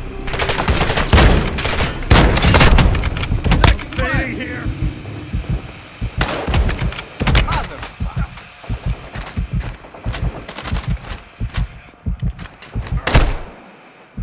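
Gunshots fire in rapid bursts, loud and close.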